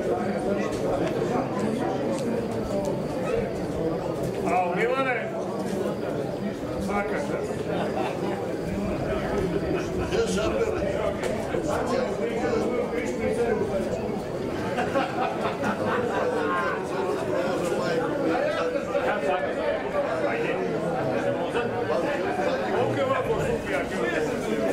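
Adult men talk casually nearby outdoors.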